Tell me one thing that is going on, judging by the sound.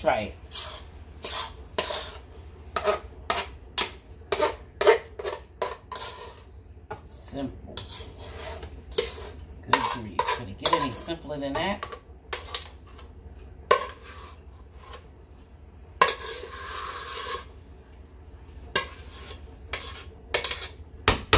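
A spoon scrapes and clinks against the inside of a metal pot.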